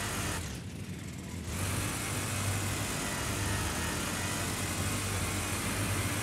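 A kart engine buzzes steadily at high revs.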